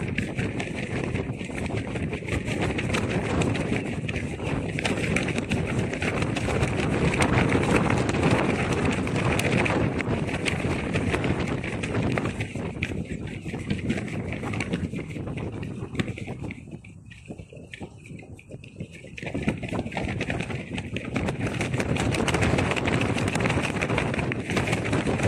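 Loose fabric flaps and rustles in the wind.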